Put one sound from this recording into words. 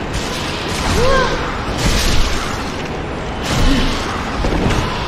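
A creature squeals sharply.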